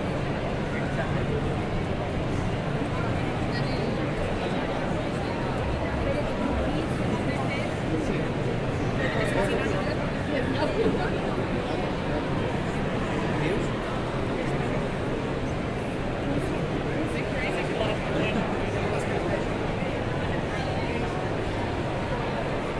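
A crowd murmurs and chatters steadily in a large hall.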